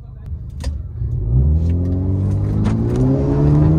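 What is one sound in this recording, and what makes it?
A car engine revs up and roars as the car pulls away.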